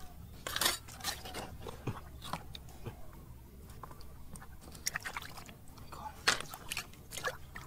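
Hands splash and swish in shallow muddy water.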